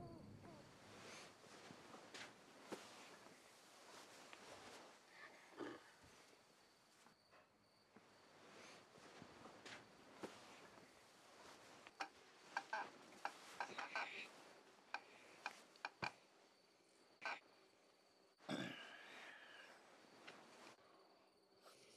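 Bedclothes rustle and shift as someone moves in bed.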